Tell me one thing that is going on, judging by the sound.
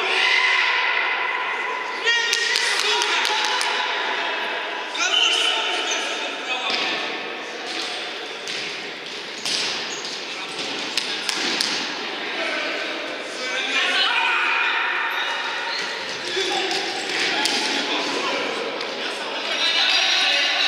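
Players shout to each other across an echoing hall.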